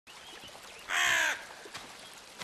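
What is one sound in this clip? A bird caws loudly once.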